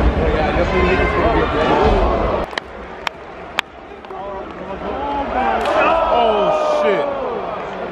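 Wrestlers' bodies slam onto the ring mat with heavy thuds.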